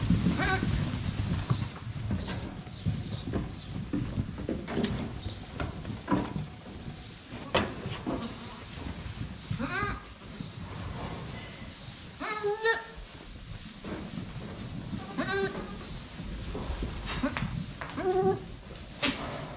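Goats bleat loudly in a barn.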